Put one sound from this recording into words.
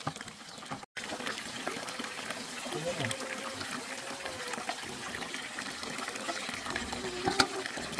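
Liquid sloshes and splashes as it is scooped and poured into a pot.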